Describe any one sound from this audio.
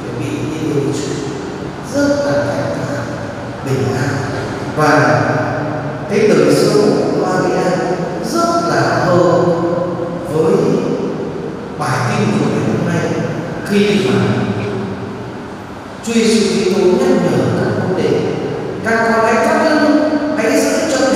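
A man speaks steadily into a microphone, heard through loudspeakers in a large echoing hall.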